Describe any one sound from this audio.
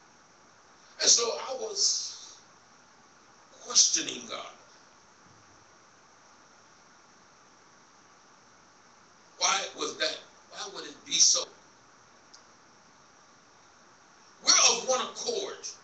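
A man preaches into a microphone in short, forceful bursts, heard over a loudspeaker in a large room.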